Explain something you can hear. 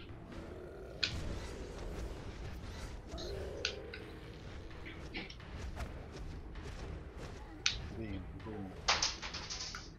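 Game combat sounds of blows and magic blasts ring out.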